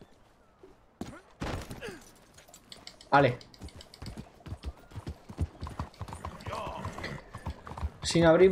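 A horse's hooves clop quickly on the ground.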